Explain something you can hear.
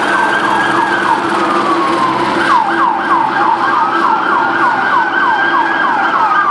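A police siren wails in a fast, rising and falling yelp.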